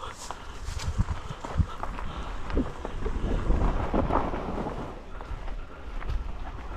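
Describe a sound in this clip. Bicycle tyres crunch over dry leaves and loose dirt.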